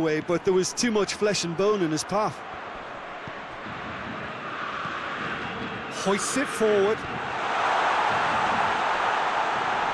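A large stadium crowd cheers and roars, growing louder.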